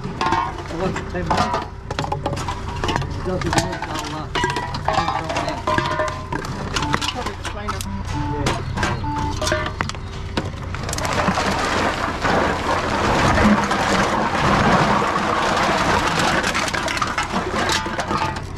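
Aluminium cans clink and rattle against each other.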